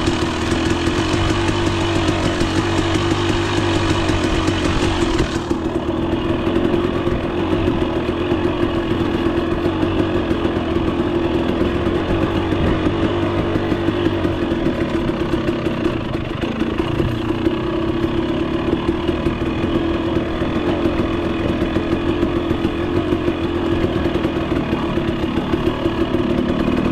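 A dirt bike engine revs and putters up close.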